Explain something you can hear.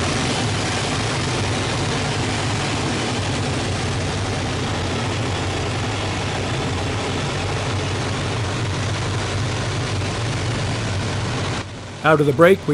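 An aircraft engine roars steadily close by.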